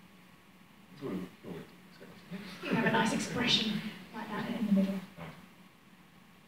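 A woman speaks calmly into a microphone.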